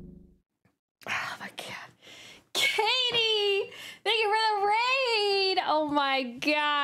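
A young woman laughs loudly and shrilly into a microphone.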